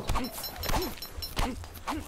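A stone pick strikes rock with sharp knocks.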